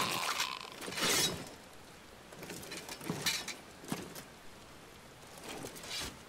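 Heavy armour clanks as a knight moves.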